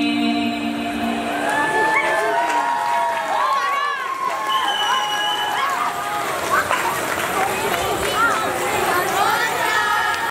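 Music with a wavering, gliding melody plays through loudspeakers.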